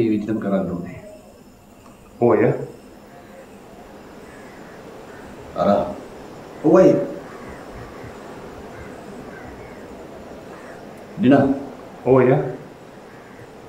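A man speaks in short, tense bursts, close by.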